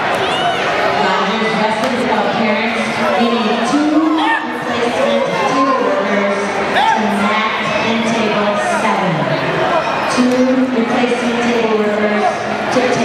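A man shouts encouragement loudly.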